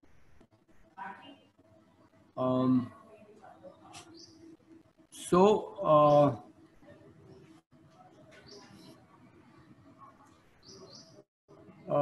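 An elderly man speaks calmly over an online call, in short bursts.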